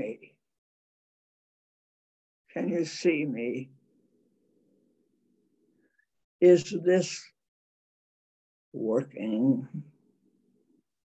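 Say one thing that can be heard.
An elderly woman speaks calmly in short phrases, close to a microphone.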